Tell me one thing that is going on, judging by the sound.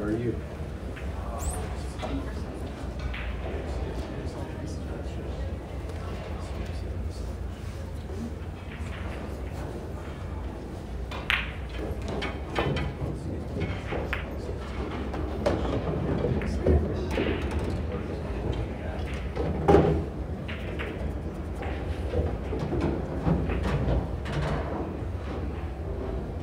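People murmur quietly in the background of a large room.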